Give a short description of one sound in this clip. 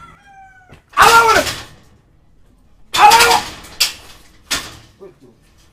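Knocking bangs on a metal gate.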